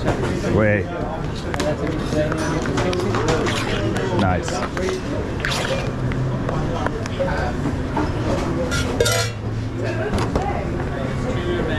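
Metal spoons scrape against steel containers.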